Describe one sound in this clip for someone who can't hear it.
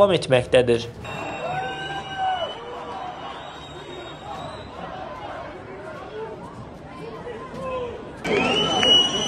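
A large crowd murmurs and talks at a distance.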